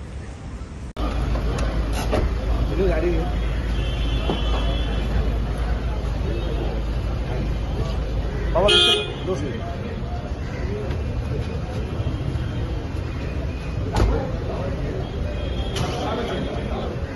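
A crowd of men murmur and talk nearby outdoors.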